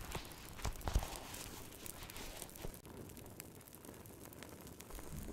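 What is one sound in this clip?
A fire crackles and pops softly.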